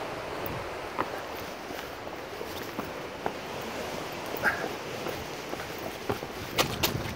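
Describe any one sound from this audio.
Footsteps crunch on rock and pebbles.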